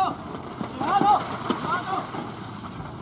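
A horse's hooves splash through muddy water.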